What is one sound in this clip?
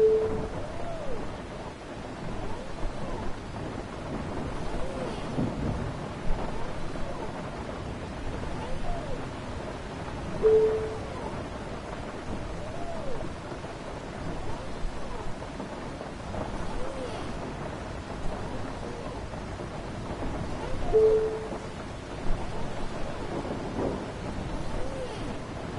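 Windscreen wipers swish back and forth at a steady pace.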